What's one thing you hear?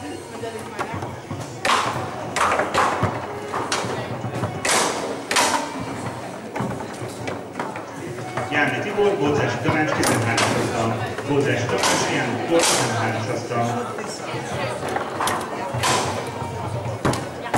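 Foosball rods clack and the ball knocks sharply against the players' figures.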